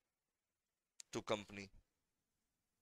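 A man speaks a few words briefly into a close microphone.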